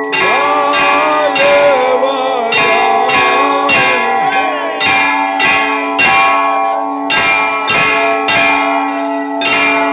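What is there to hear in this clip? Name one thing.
A crowd of people sings together.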